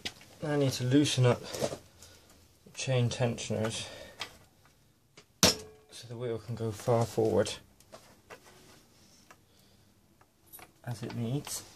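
A metal tool clicks and scrapes against a bolt.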